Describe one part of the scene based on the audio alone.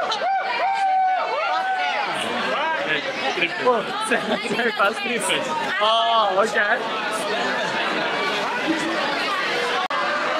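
A young man laughs and talks excitedly close by.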